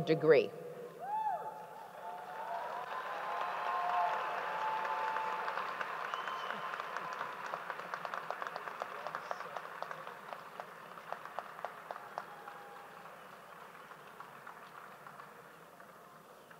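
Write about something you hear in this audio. A crowd applauds and cheers in a large hall.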